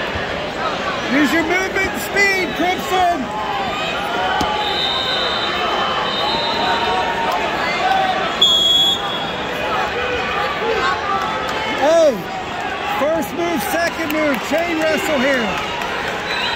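Men and women in the crowd shout loudly.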